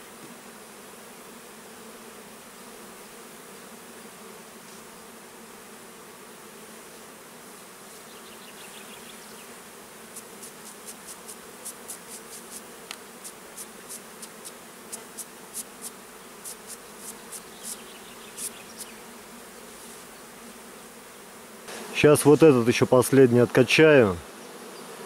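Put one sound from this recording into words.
Bees buzz steadily around the hives.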